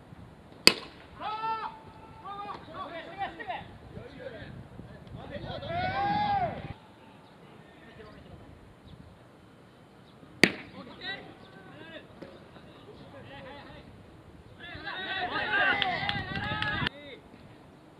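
Young men shout and cheer loudly across an open field.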